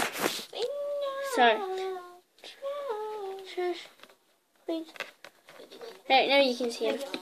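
A girl speaks close to a microphone in a sing-song, animated voice.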